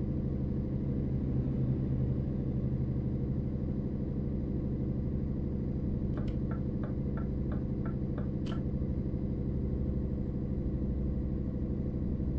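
A truck engine rumbles steadily at a low, even pitch.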